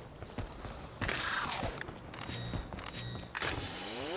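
A futuristic gun fires with a loud sweeping zap.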